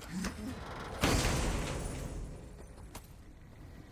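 A heavy chest bursts open with a loud whoosh.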